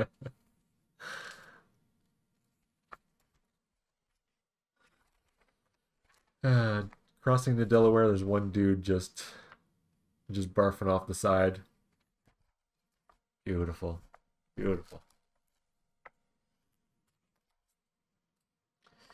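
Magazine pages rustle as they are turned.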